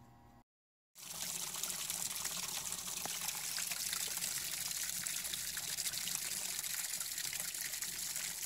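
A gas water heater burner hisses steadily.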